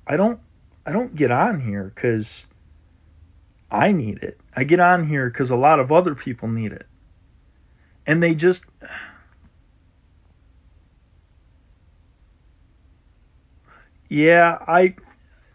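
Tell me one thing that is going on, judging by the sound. A young man talks calmly close up, with pauses.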